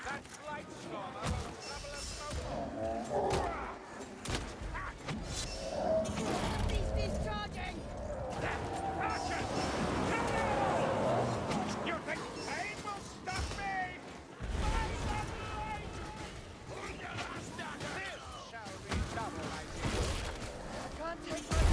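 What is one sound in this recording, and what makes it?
Weapon blows clang against a shield.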